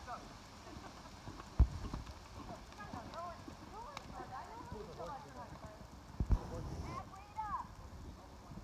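A horse canters with dull thudding hoofbeats on soft sand.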